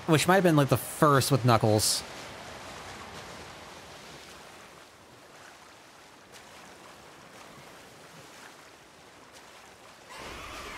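Water splashes and churns steadily.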